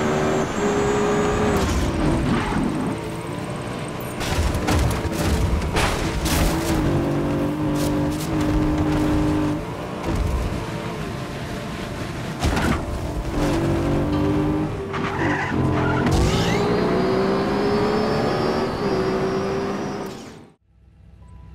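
A car engine roars at high revs, its pitch rising and falling with gear changes.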